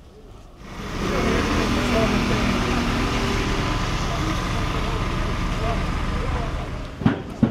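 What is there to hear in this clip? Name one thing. A motorbike engine putters past.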